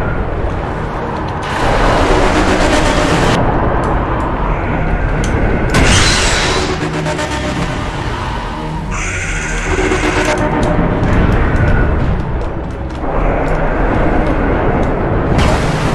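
Rapid gunfire blasts out in loud bursts.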